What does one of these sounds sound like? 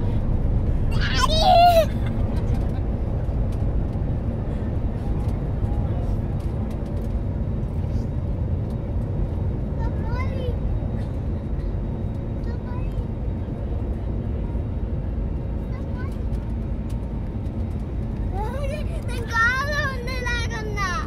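A young boy speaks excitedly close by.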